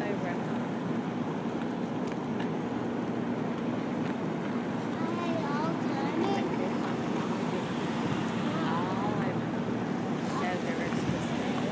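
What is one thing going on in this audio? Cars roll past slowly, one after another, with tyres humming on asphalt.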